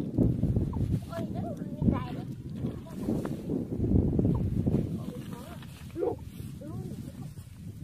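Young girls talk softly with each other nearby.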